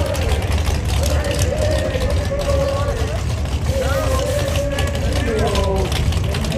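A race car engine rumbles loudly at idle.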